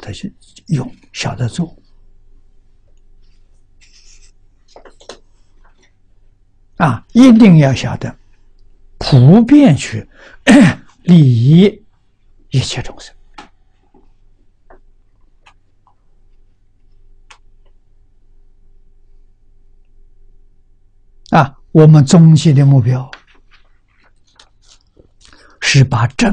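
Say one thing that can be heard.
An elderly man speaks calmly into a microphone, in short phrases with long pauses.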